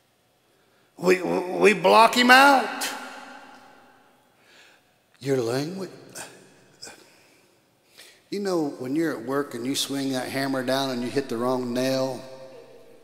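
An elderly man speaks with animation through a microphone in a reverberant hall, pausing between phrases.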